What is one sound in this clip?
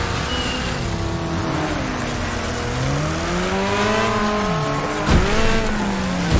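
A car engine revs and whines, rising and falling in pitch.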